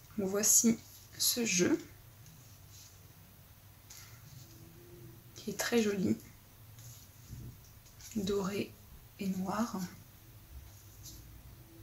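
Playing cards slide and rustle softly as they are shuffled by hand.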